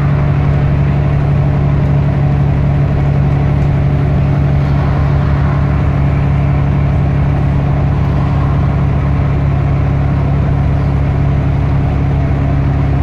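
A bus engine hums and drones steadily.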